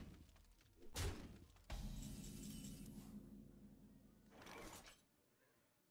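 A bright chime rings out to announce a new turn.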